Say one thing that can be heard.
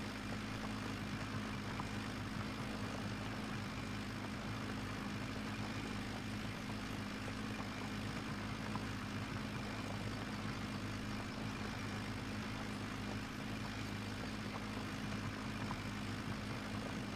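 A tractor engine drones steadily at low speed.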